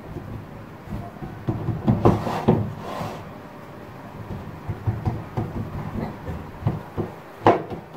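Hands press and pat soft dough with dull thuds.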